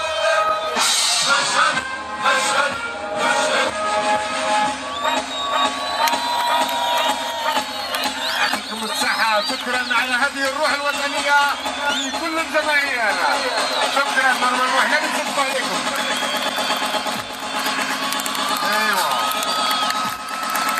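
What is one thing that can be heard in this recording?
A large crowd of young people cheers and chants loudly outdoors.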